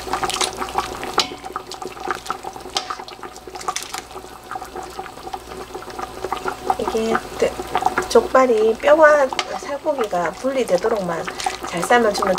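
Liquid splashes softly as a ladle stirs broth.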